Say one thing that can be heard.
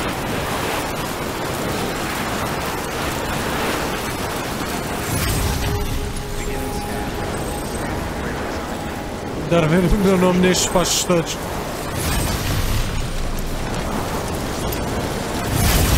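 A zipline rider whooshes steadily along a cable.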